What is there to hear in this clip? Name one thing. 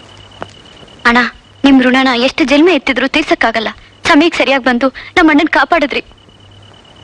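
A young woman speaks pleadingly in a high voice, close by.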